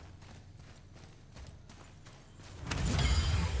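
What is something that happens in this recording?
Footsteps crunch on a stony floor.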